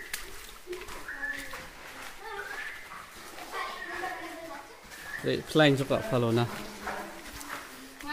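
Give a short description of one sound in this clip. People talk and call out nearby, their voices echoing off rock walls.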